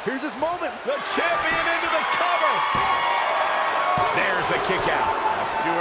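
A large crowd cheers and roars in an arena.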